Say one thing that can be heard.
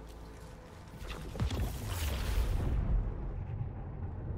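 A teleporter whooshes and roars as it powers up.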